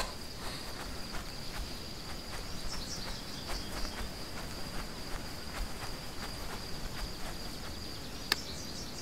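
Footsteps crunch steadily across grass and dirt.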